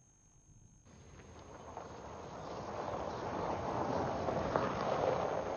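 Tyres crunch on gravel.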